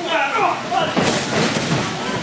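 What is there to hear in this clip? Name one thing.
A wrestler slams down onto a wrestling ring mat with a loud thud.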